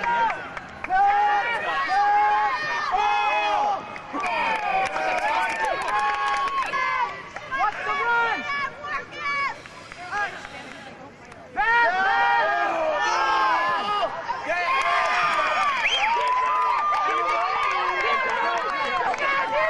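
A crowd of young men and women shout and cheer close by.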